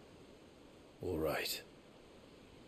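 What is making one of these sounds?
A young man says a short word in a low, calm voice.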